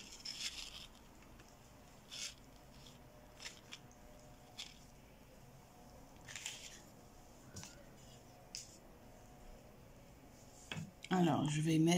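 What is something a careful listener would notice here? A cloth rustles and rubs as it is handled.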